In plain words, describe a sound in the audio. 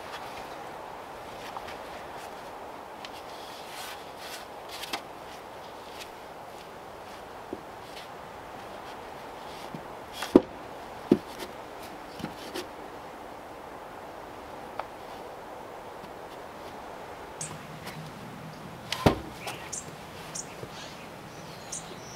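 Wooden poles knock against each other.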